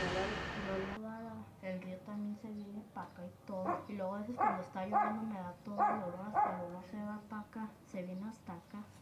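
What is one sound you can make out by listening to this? A young girl speaks calmly, close by.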